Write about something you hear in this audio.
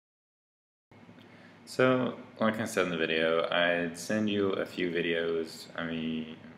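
A young man talks calmly and closely to the microphone.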